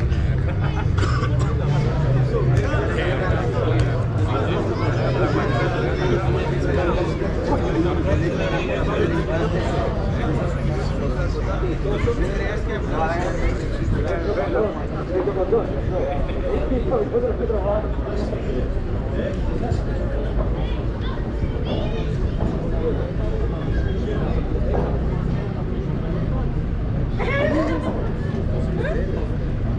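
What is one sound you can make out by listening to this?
Rackets strike a padel ball back and forth.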